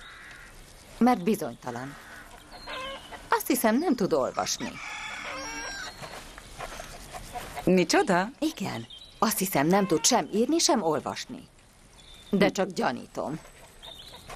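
A second woman answers calmly, close by.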